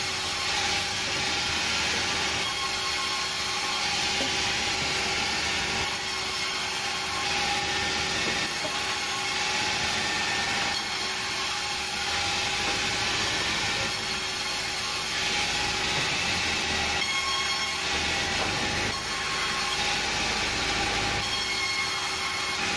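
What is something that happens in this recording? A sawmill machine runs with a loud, steady whine.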